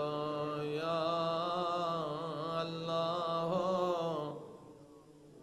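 A middle-aged man chants a prayer in a long, wavering melody through a microphone.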